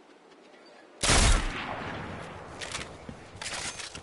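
Gunshots fire with a loud booming crack.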